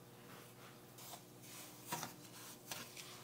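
A wooden spoon scrapes and stirs grainy semolina in a pan.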